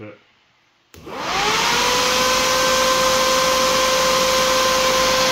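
An electric fan whirs loudly, spinning up to a steady roar and hum.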